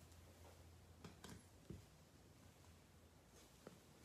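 A card case clicks down on a tabletop.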